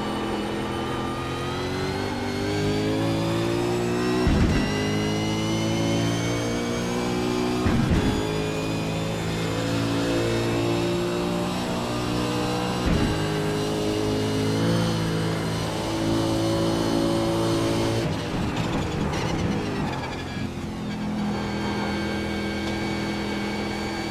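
A racing car engine roars loudly, rising in pitch as it accelerates and dropping with each gear change.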